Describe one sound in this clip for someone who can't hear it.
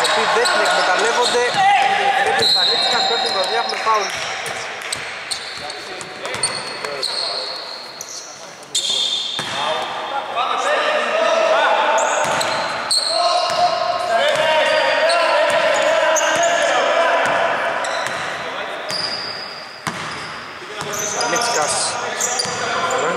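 Sneakers squeak sharply on a hard court.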